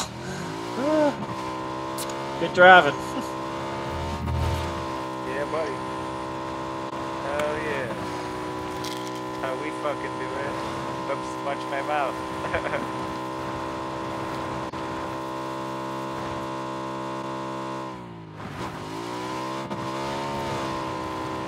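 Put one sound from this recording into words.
A motorcycle engine drones steadily, dipping briefly as the rider shifts.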